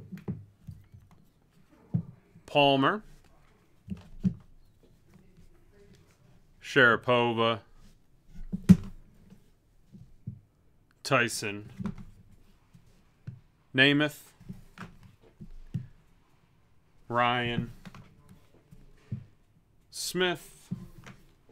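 Hard plastic cases clack and tap against each other as they are picked up and set down.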